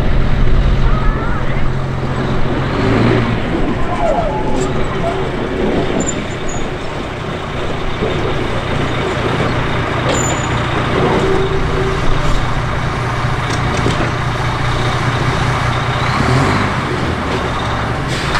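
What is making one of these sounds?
A diesel locomotive engine rumbles steadily nearby.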